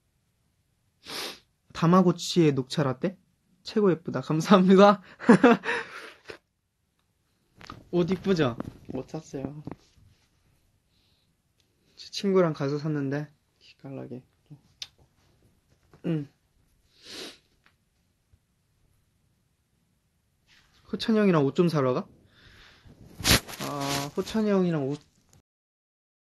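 A young man talks casually and close up, in short bursts with pauses.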